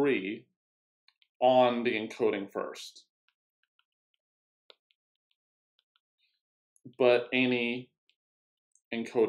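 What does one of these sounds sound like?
A young man speaks calmly and close to a microphone, in short phrases with pauses.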